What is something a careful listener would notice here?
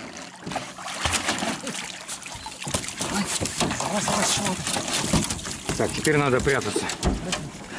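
Water splashes and drips as a dog is hauled out of a lake.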